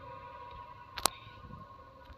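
A metal spoon clinks against a pot.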